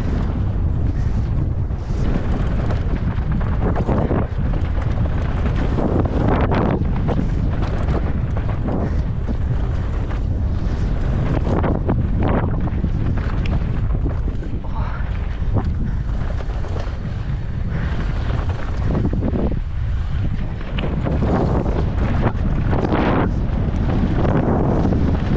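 Bicycle tyres crunch and rattle over a rough dirt trail.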